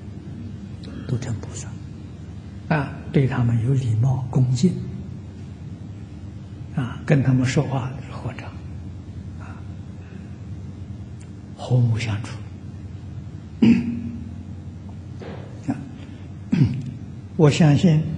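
An elderly man speaks calmly and slowly into a microphone, with pauses between phrases.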